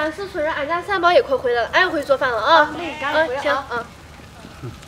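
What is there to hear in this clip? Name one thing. A second woman answers excitedly close by.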